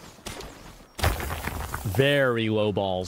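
A pickaxe strikes rock with sharp cracks.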